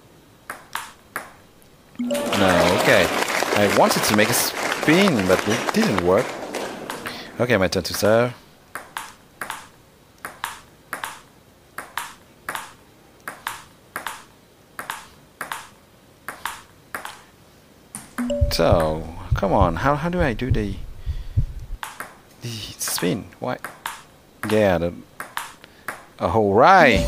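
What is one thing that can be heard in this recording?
A table tennis ball clicks quickly back and forth off paddles and a table.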